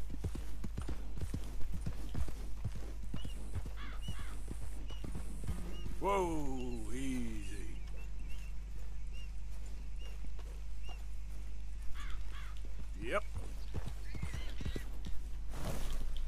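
A horse's hooves thud steadily on grass.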